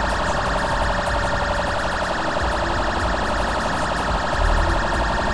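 A police siren wails rapidly and continuously.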